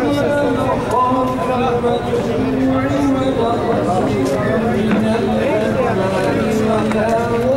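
Several elderly men talk at once in a lively murmur nearby.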